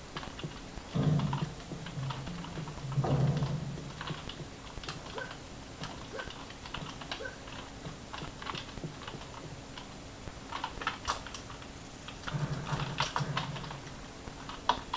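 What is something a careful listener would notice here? Gunfire and explosions from a video game boom through desktop speakers.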